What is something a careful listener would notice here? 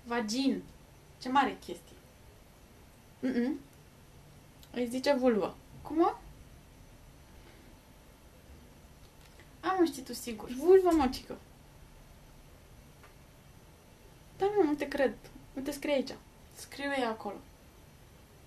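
A young woman reads out short phrases close by, with long pauses.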